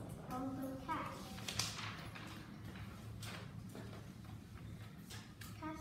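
Paper rustles and crinkles in a girl's hands.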